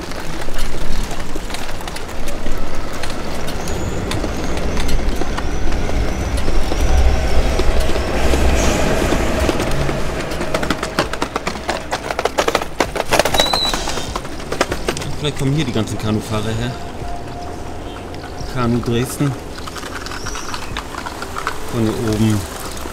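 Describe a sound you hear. Bicycles rattle past over cobblestones close by.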